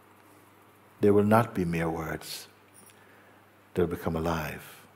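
An elderly man speaks calmly and thoughtfully, close by.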